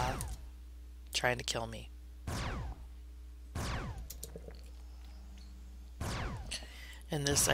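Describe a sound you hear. Magic blasts whoosh in short bursts with falling tones.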